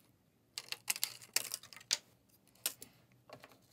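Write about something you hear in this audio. Scissors snip through thin plastic.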